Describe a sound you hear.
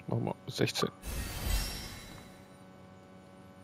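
A bright shimmering whoosh swells and fades.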